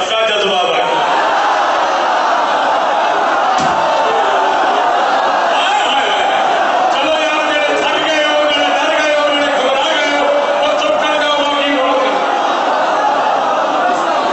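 A crowd of men chants along loudly.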